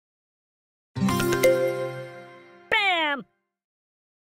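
A cartoon juicer whirs in a game.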